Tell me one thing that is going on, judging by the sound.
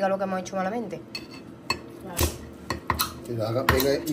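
A knife scrapes and clinks against a plate.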